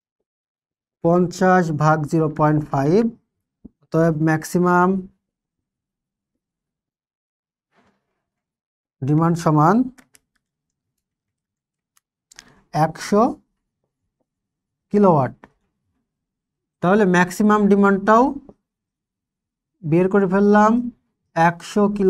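A young man explains calmly, close by, in short bursts with pauses.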